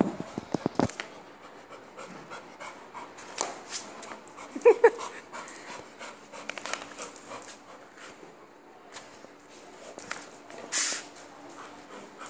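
Paws patter and scuff on a hard floor.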